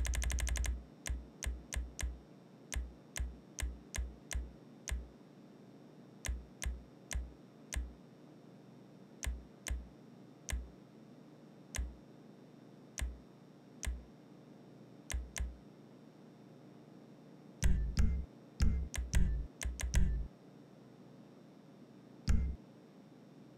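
Short game menu clicks tick as options are scrolled through.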